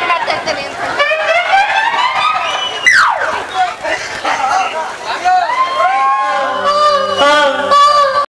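Music with a singing voice plays loudly over loudspeakers.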